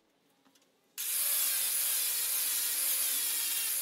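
An angle grinder whines loudly as it grinds steel.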